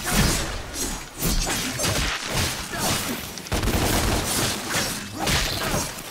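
Heavy thuds land as a fighter hits foes.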